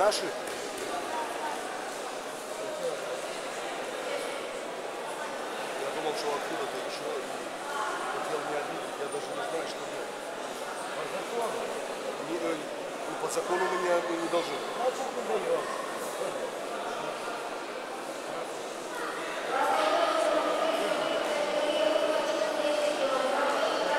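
A crowd of people chatter throughout a large echoing hall.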